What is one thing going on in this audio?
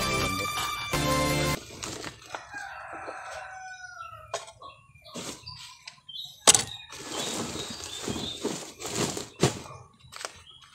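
A plastic sack rustles and crinkles as it is handled.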